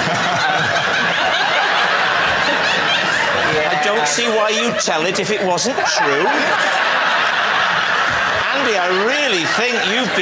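A large studio audience laughs loudly.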